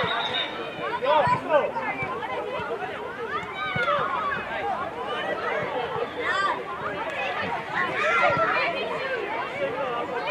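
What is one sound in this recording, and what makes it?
Young boys shout and call out excitedly outdoors.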